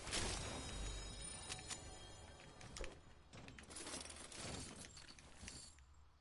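Items clink as they are picked up.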